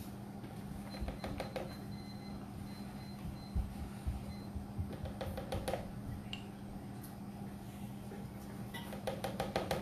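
A spoon taps against the rim of a small container in quick bursts.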